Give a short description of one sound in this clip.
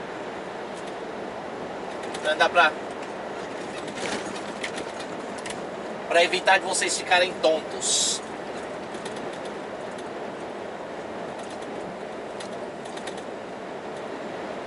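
A truck's engine hums steadily from inside the cab.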